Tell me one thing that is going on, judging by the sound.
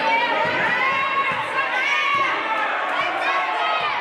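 A basketball bounces on the hard floor.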